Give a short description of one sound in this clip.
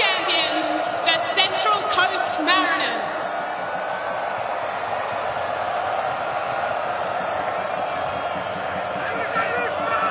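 A large stadium crowd cheers and chatters steadily.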